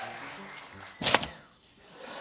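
A small wooden hatch slides open with a knock.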